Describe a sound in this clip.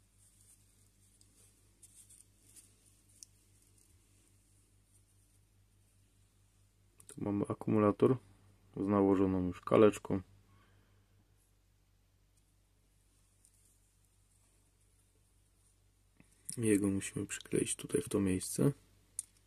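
Small plastic parts click and tap as hands handle them.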